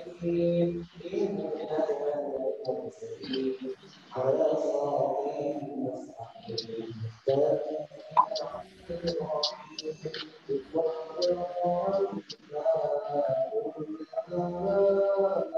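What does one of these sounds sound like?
A man chants a prayer in a melodic voice, echoing in a large hall.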